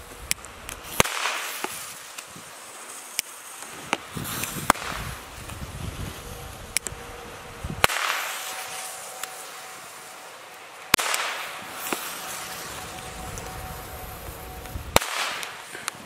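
Firecrackers bang loudly one after another outdoors.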